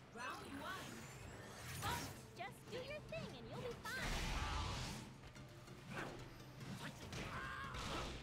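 Fighting game attacks whoosh and crash with bursts of energy.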